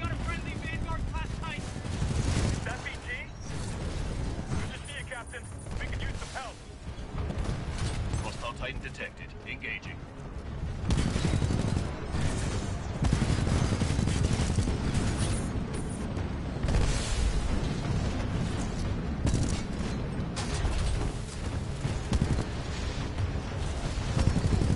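Heavy gunfire and explosions boom and rattle throughout.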